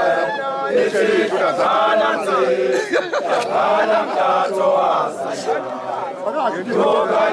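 A crowd of men and women sings and chants loudly outdoors.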